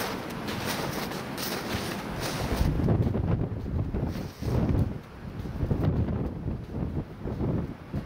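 Wind blows outdoors, rumbling steadily.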